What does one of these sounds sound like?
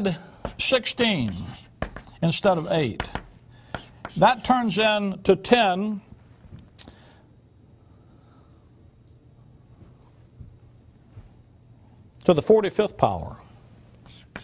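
An older man speaks with emphasis into a microphone.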